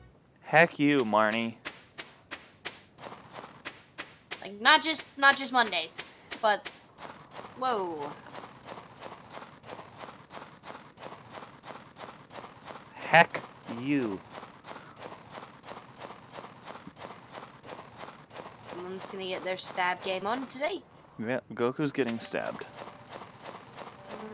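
Footsteps crunch quickly and steadily through snow.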